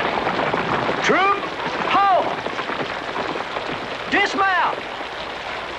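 A horse neighs loudly several times.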